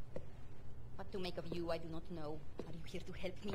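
A young woman asks a question quietly.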